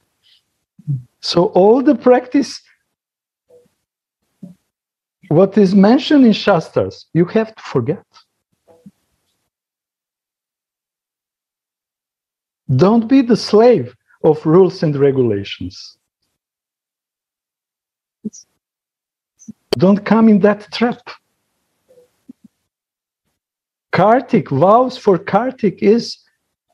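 A middle-aged man talks calmly over an online call, in short bursts with pauses.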